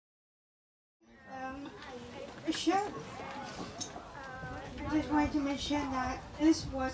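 A young woman speaks into a microphone over a loudspeaker, outdoors.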